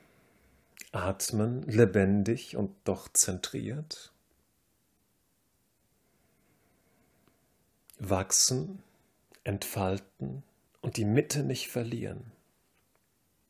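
A man speaks calmly and clearly, close by, with pauses.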